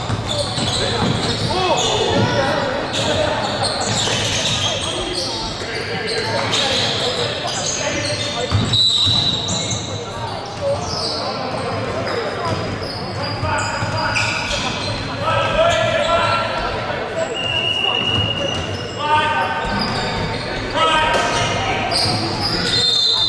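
Spectators chatter and call out nearby in a large echoing hall.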